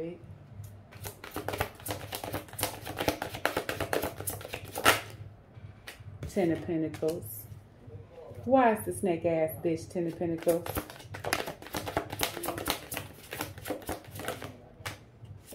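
Playing cards riffle and flutter as they are shuffled by hand.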